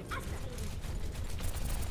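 A weapon fires rapid electronic shots.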